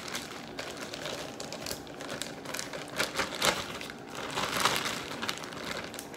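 A plastic bag crinkles and rustles close by.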